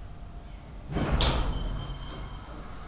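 Elevator doors slide open with a thud.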